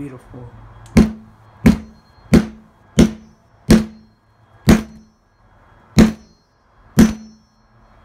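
A metal blade strikes a phone on a hard surface in sharp, repeated knocks.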